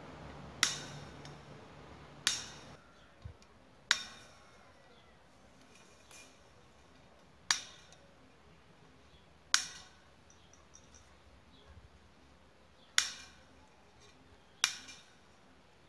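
Pliers snap through wire with sharp metallic clicks.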